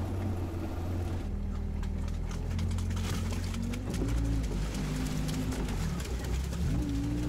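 A vehicle engine rumbles steadily and revs up and down.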